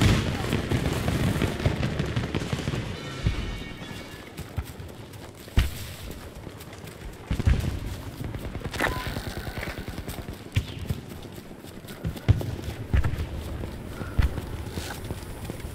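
Gunshots crack in the distance.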